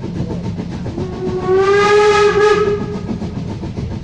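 A steam whistle blows loudly.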